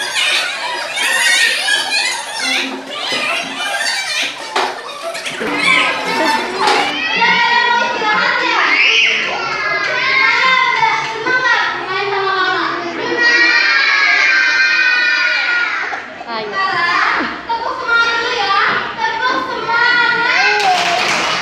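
Many young children chant and call out together.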